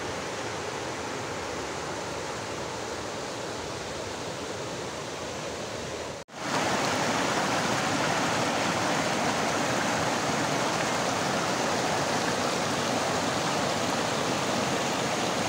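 A shallow stream rushes and splashes over rocks, louder and closer after a brief cut.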